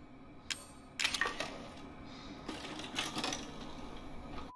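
A videotape clunks into a player.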